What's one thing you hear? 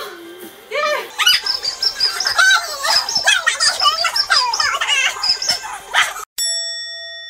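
A young woman sings and chants excitedly in a high voice.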